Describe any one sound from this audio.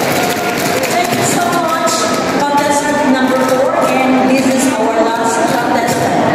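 Lively music plays over loudspeakers in a large echoing hall.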